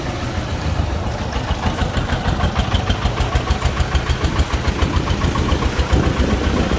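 A small diesel tractor engine chugs loudly and rhythmically close by.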